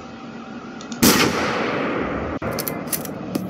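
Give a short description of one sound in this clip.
A rifle fires a single loud shot that echoes away.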